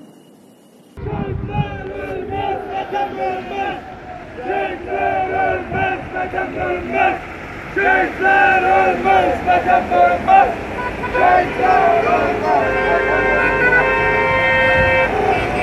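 A crowd of men cheer and shout outdoors.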